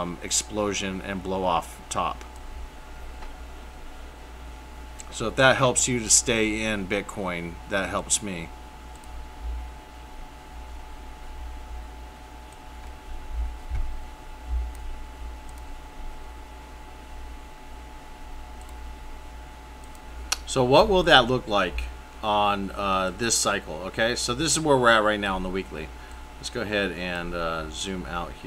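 A man talks calmly into a close microphone, with pauses.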